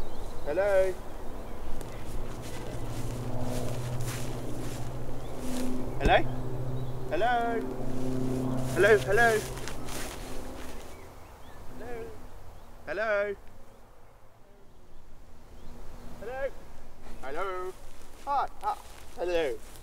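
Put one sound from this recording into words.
A man talks animatedly on a phone outdoors.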